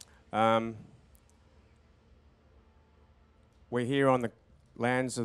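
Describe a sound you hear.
A man speaks in short, drawn-out calls through a microphone and loudspeakers.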